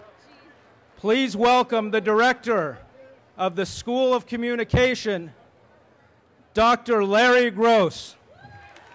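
A man announces loudly through a loudspeaker in a large, echoing tent.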